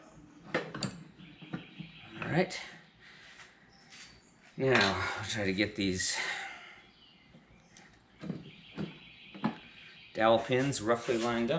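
Metal engine parts clink and knock as they are handled.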